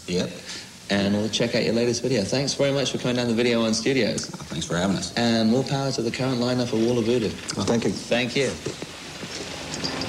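A young man talks casually and with animation, close up.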